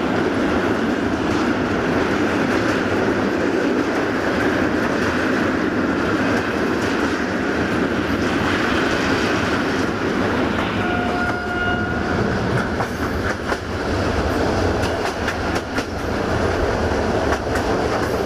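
Wind rushes loudly past the side of a moving train.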